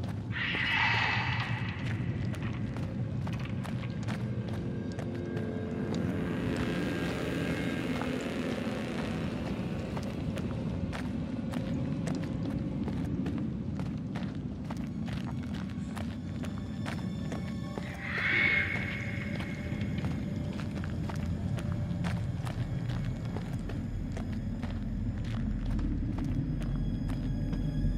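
Footsteps scuff slowly on rough ground.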